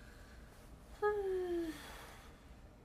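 A young woman exclaims briefly nearby with a falling tone.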